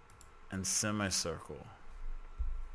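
A man speaks briefly and casually into a close microphone.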